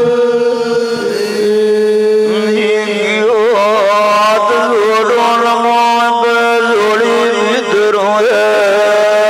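A harmonium plays a steady drone beneath the singing.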